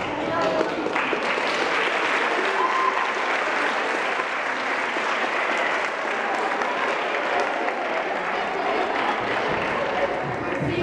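A large crowd of children and adults chatters loudly in an echoing hall.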